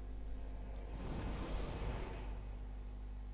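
A soft rushing whoosh swells and fades away.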